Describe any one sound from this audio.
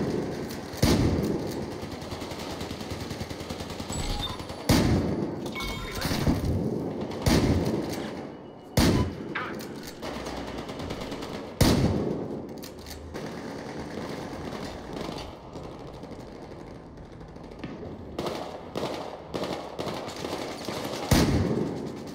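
Loud gunshots fire in sharp single blasts.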